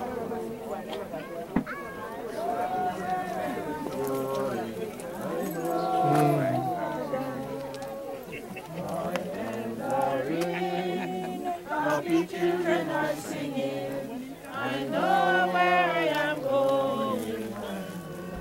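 A group of men and women sing a slow hymn together outdoors.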